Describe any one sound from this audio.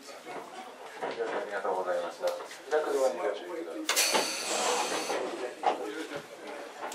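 Young people talk with animation close by.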